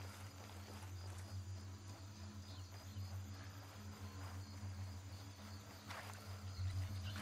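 Footsteps thud quickly on dry ground.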